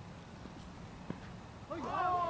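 A bat hits a cricket ball with a knock.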